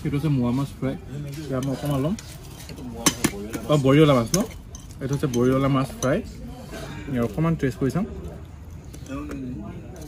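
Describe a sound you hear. Metal dishes clink on a table.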